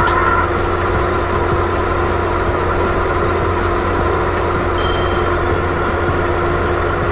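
A small kart engine drones steadily.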